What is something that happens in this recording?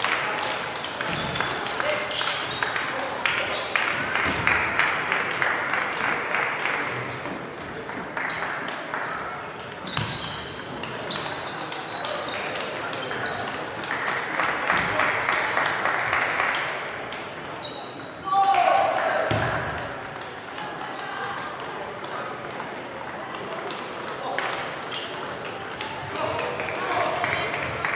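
Players and onlookers talk and call out in a reverberant hall.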